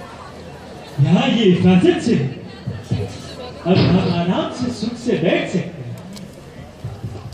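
A man speaks into a microphone, heard over loudspeakers.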